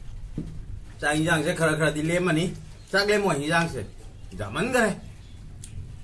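A man speaks loudly and with animation close by.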